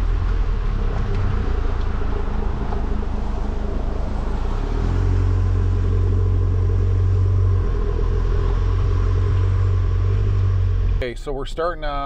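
A vehicle engine rumbles steadily while driving over a rough trail.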